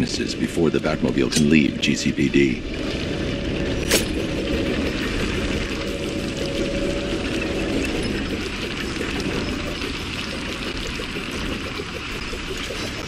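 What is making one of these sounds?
A small flying device whirs steadily as it rushes through the air.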